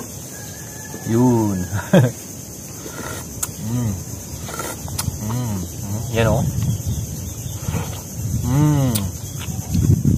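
A young man hums with pleasure while eating.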